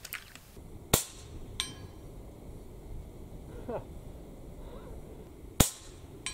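A metal target rings with a sharp clang when struck.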